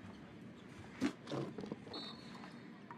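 A young boy sets a rubber bath mat down on the floor.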